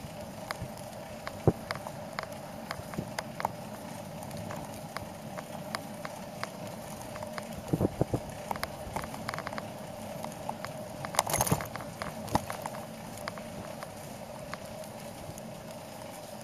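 Tyres roll over asphalt with a light, steady rattle and occasional clicks.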